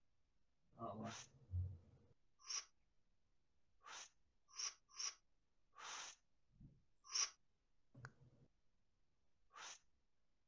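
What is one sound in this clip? Short hissing electronic chimes sound again and again.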